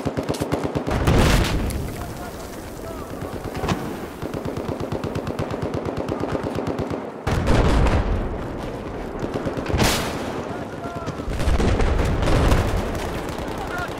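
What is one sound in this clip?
Explosions boom with deep rumbling nearby.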